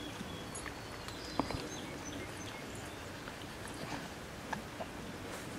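A small dog rustles the leaves of a bush close by.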